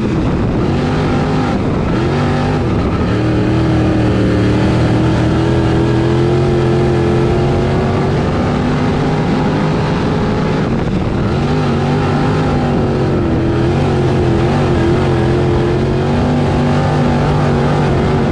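A race car engine roars loudly from inside the car, rising and falling in pitch as the driver speeds up and slows down.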